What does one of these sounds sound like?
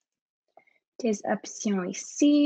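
A young woman speaks through a computer microphone.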